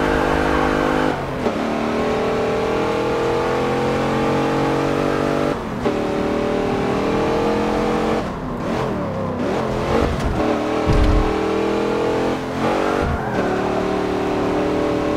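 An SUV engine roars as it accelerates hard and shifts up through the gears.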